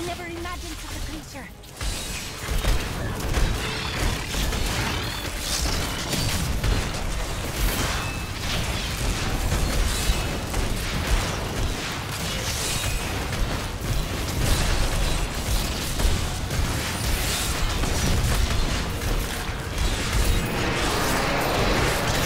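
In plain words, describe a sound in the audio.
Spells crackle and explode in rapid bursts during a fierce battle.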